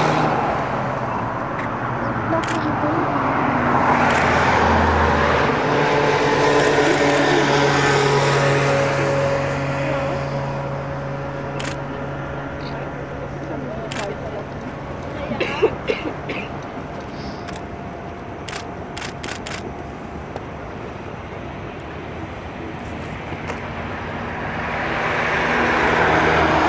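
A jet airliner's engines whine and rumble steadily as it taxis past.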